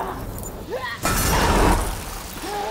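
A heavy body slams into pavement with a loud crash.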